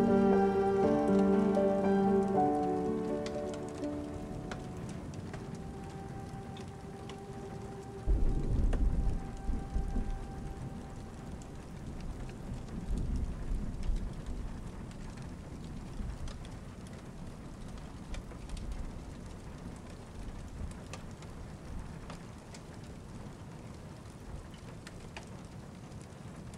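Rain patters steadily against a window.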